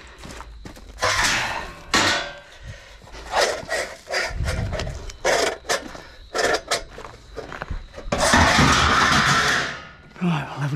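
Metal strips clang and rattle as they are tossed onto a pile of scrap metal.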